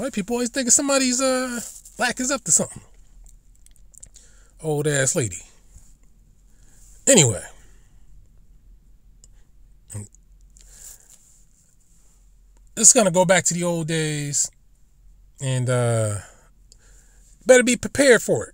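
A man speaks in short, animated bursts with pauses between them.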